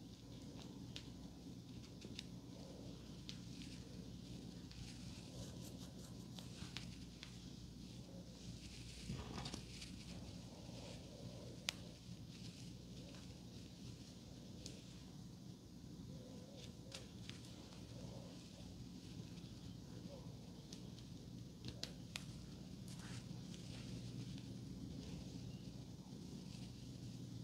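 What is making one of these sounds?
Hair pins click and scrape against each other.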